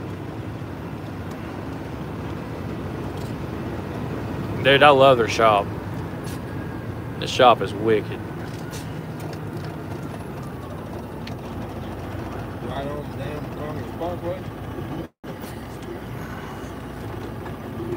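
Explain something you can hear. Tyres hiss softly on a snowy road.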